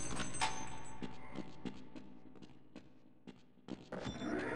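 Footsteps clack on a hard floor in an echoing space.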